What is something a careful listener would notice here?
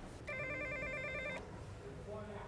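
An intercom buzzer buzzes.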